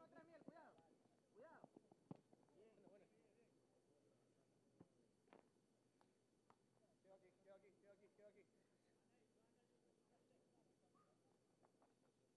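A ball is kicked with a dull thud.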